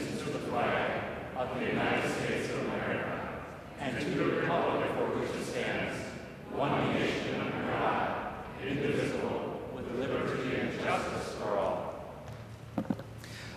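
A group of people recite together in unison, echoing in a large hall.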